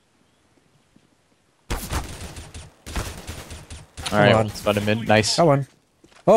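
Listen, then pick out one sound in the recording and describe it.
A rifle fires several quick shots.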